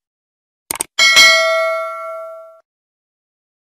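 A bell chimes and rings out, slowly fading.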